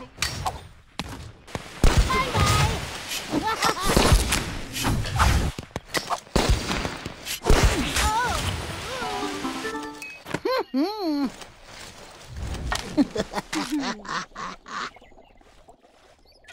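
Gunfire pops in quick bursts.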